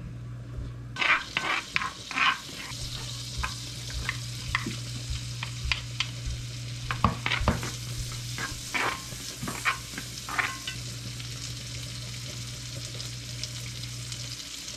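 Food sizzles loudly in a hot pan.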